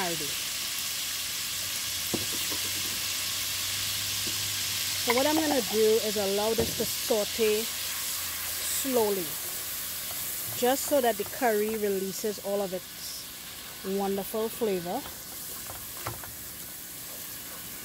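Food sizzles and crackles in hot oil in a pot.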